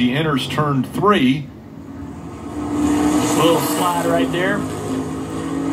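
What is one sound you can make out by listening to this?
A race car engine roars past at high speed, heard through a television speaker.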